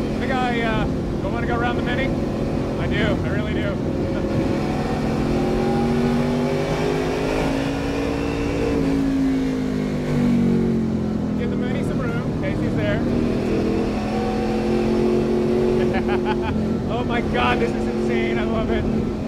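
A race car engine roars loudly and steadily, rising and falling in pitch as it shifts gears.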